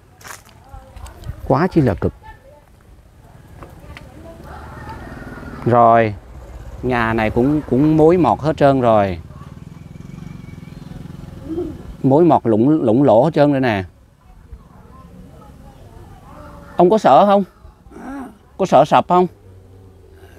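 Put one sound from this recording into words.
An elderly man talks calmly nearby.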